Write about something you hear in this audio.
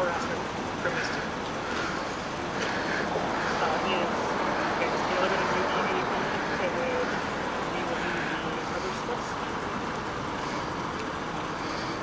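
A man talks calmly on a phone close by.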